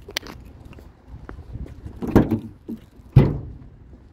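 A truck tailgate drops open with a clunk.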